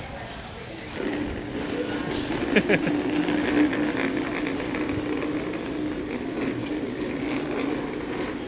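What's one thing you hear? A plastic chair scrapes across a hard floor as it is pushed.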